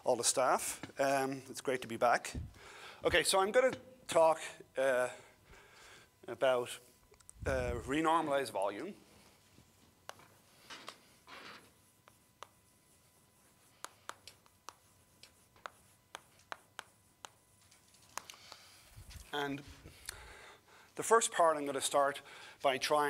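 A middle-aged man speaks calmly in a room with a slight echo.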